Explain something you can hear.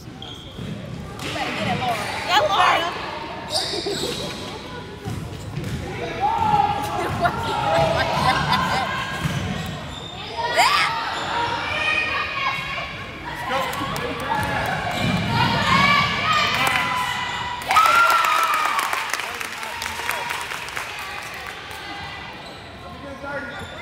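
Spectators cheer and shout loudly in an echoing gym.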